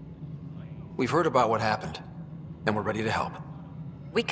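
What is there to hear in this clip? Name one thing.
A young man answers calmly.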